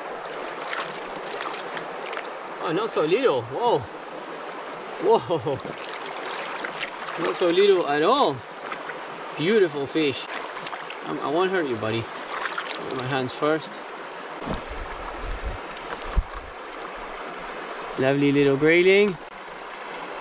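A shallow river ripples over stones.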